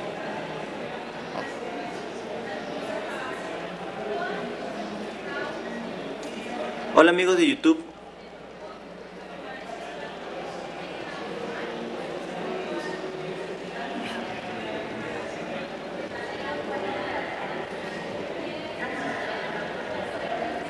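A man speaks into a microphone in an echoing hall.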